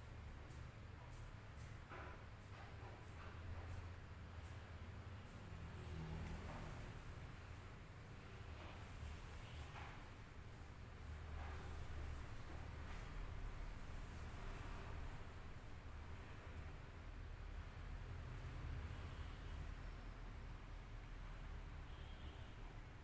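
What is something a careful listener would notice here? Hands rub and squish through wet, soapy hair.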